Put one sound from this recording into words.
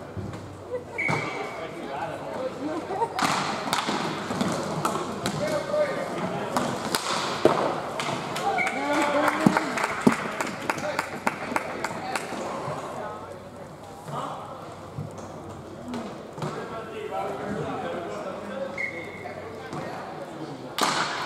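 Young players shout and call out across an echoing rink.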